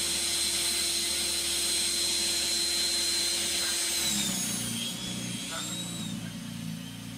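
Snow hisses as it sprays out of a snow blower.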